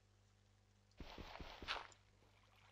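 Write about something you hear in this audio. Dirt crunches as blocks are broken in quick succession.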